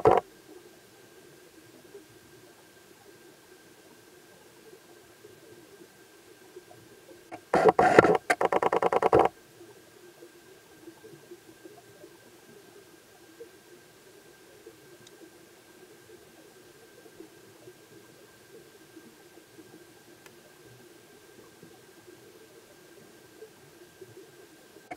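Flowing water murmurs softly, heard from underwater.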